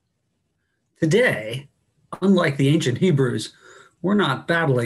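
A middle-aged man speaks calmly into a microphone over an online call.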